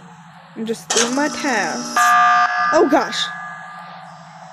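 An alarm blares loudly for a few seconds.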